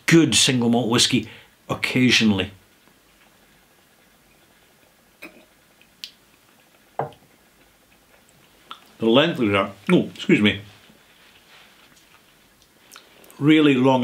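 A middle-aged man speaks calmly and close to a microphone, with pauses.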